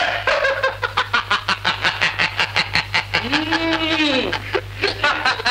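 A man laughs loudly, close by.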